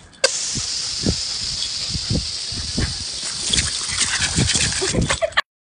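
A dog snaps and splashes at a stream of water.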